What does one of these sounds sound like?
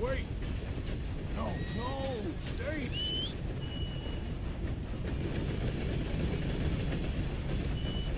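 A steam train rumbles along a wooden bridge.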